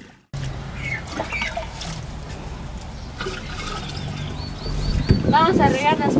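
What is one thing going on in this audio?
Water splashes as a girl pours it from a jug.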